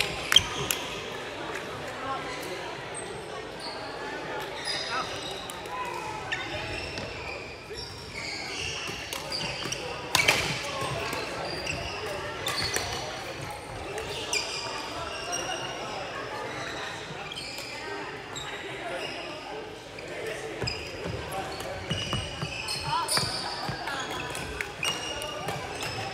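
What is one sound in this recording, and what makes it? Shoes squeak sharply on the court floor.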